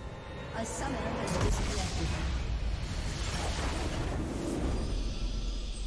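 Magic spell effects whoosh and burst.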